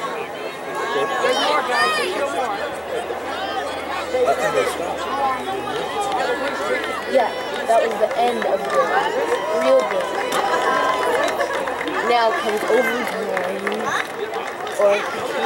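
A crowd of young men and boys chatter and call out outdoors.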